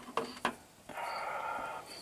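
A metal tool clinks against an engine part.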